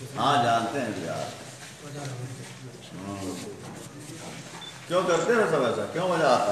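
A middle-aged man speaks calmly into a microphone close by.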